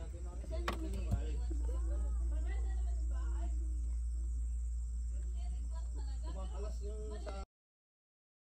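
Several men and women talk casually nearby outdoors.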